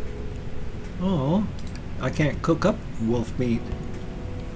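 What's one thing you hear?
An older man speaks calmly into a close microphone.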